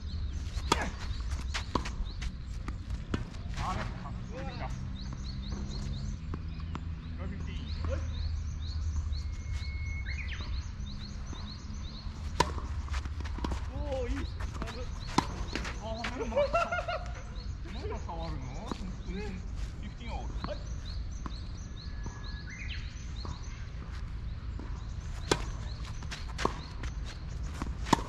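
Birds chirp outdoors.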